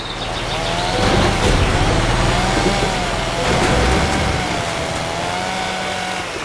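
Bus tyres crunch and skid over rough ground.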